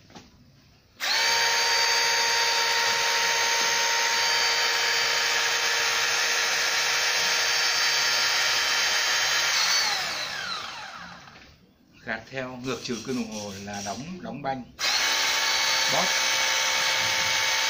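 A battery-powered hydraulic tool whirs loudly with a steady electric motor whine.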